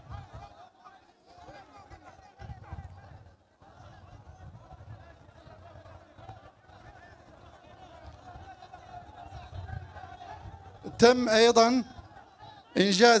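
A man speaks calmly into a microphone outdoors, heard through a loudspeaker.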